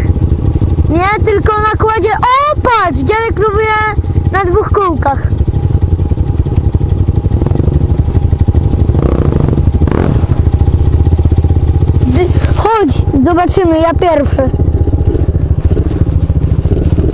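Wind rumbles against the microphone as the dirt bike rides.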